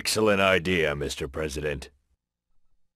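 A man speaks calmly and approvingly, close by.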